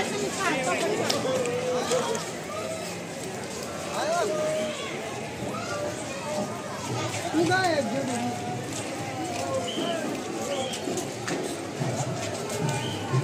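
A crowd of men and women chatter around, heard outdoors.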